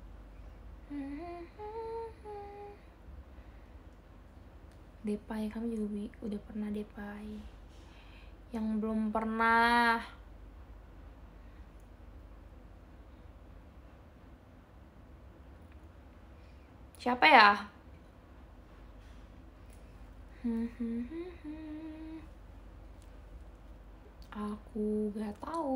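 A young woman speaks softly and casually, close to a microphone, in short bursts with pauses.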